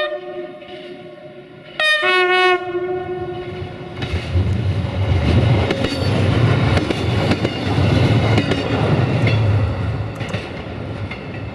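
A train rumbles and clatters past close by.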